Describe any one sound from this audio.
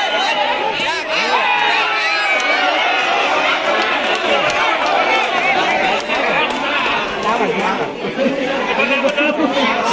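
A man shouts and cheers excitedly nearby.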